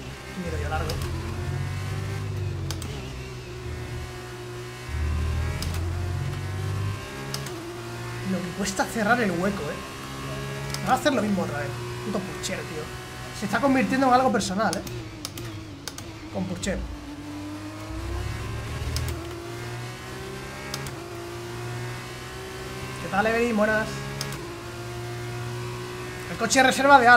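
A racing car engine hums and whines, shifting pitch as it speeds up and slows down.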